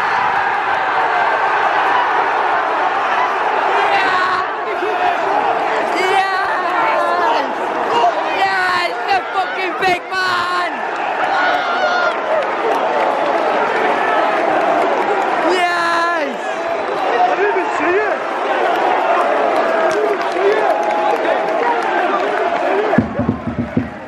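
A large stadium crowd cheers and sings loudly in an open, echoing space.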